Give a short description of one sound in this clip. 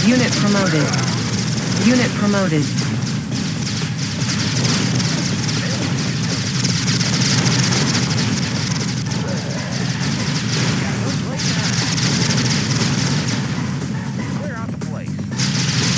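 Rapid gunfire crackles without pause.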